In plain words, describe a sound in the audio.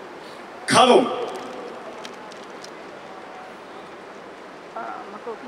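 A group of young performers shouts a loud call outdoors.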